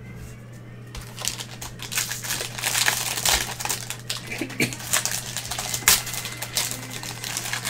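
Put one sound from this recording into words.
A plastic wrapper crinkles and crackles as it is torn open.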